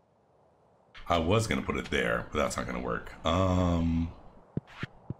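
A man speaks calmly into a close microphone.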